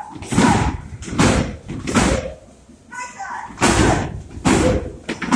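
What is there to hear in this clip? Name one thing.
Fists thud repeatedly against heavy punching bags in an echoing room.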